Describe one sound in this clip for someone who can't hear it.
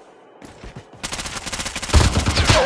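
Rapid gunfire rattles loudly and close by.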